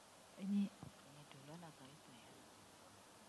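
A woman speaks briefly and quietly into a microphone.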